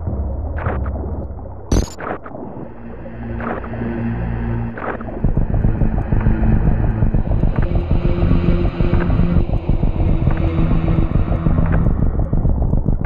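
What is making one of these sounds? Video game music plays with steady tones.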